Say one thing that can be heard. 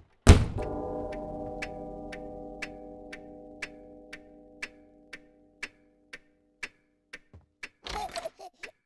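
A clock strikes once with a deep, long ringing chime that slowly fades.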